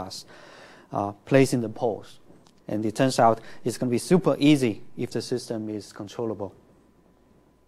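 A man speaks calmly and steadily into a nearby microphone.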